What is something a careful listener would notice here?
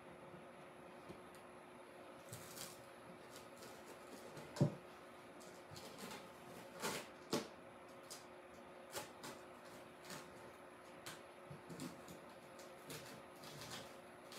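Paper peels and rustles off a board.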